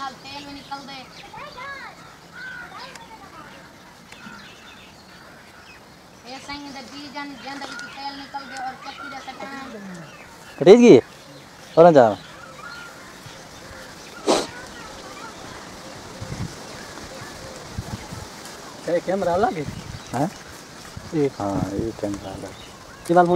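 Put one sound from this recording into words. Boys talk with animation outdoors, close by.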